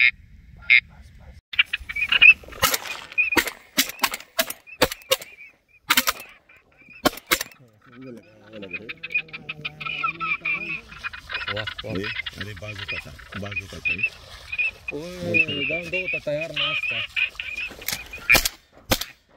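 Flocks of ducks call overhead.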